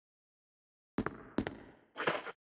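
Footsteps tap across a hard floor.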